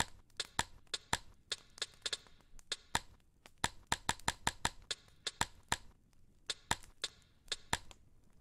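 A fire crackles and pops in a fireplace.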